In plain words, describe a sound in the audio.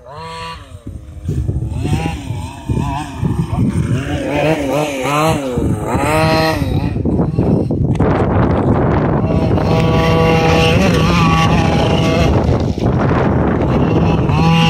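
A toy car's electric motor whines and revs.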